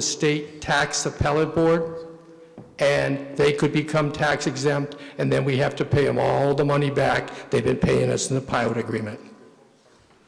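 A middle-aged man speaks calmly into a microphone, heard through loudspeakers in an echoing hall.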